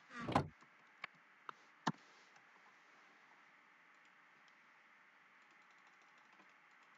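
Items click softly as they are moved in a game inventory.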